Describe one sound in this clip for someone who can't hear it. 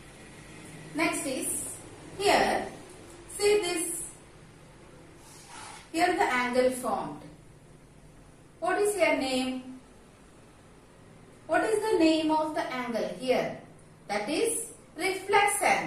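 A young woman speaks calmly and clearly, as if teaching, close by.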